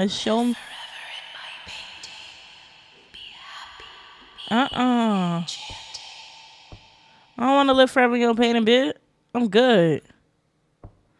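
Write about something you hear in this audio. A young woman speaks loudly and with animation into a close microphone, her voice rising and falling in drawn-out tones.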